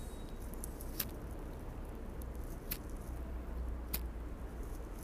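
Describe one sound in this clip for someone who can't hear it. A lighter clicks and flares.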